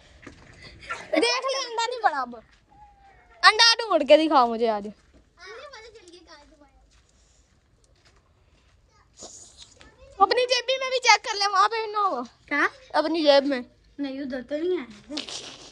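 A boy talks loudly and with animation close by.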